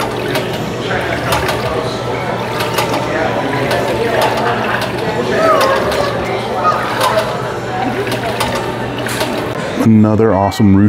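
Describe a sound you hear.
Water trickles and splashes steadily into a fountain basin.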